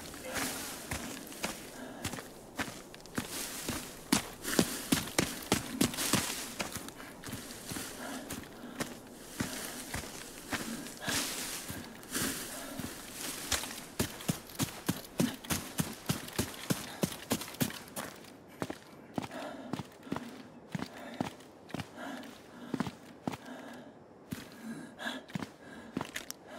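Quick footsteps rustle through tall grass and over ground.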